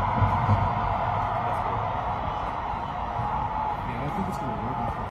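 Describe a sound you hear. A large crowd cheers and murmurs in the stands.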